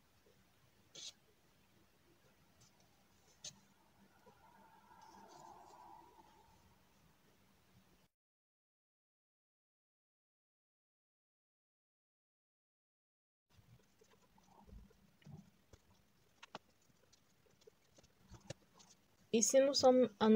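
Yarn rustles softly against a crochet hook.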